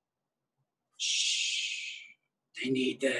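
A man makes a shushing sound.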